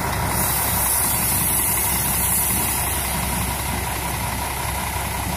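A bus engine rumbles low and steady close by as the bus rolls past.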